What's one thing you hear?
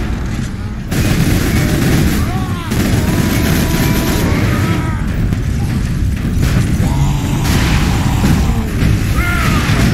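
A deep roaring rumble of battle goes on.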